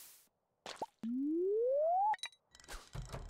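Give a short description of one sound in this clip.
A fishing line is cast with a rising whistle.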